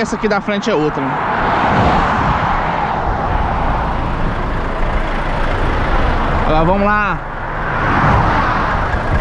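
Wind and tyres roar steadily at speed.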